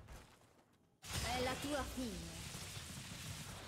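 A magic beam fires with a loud zap.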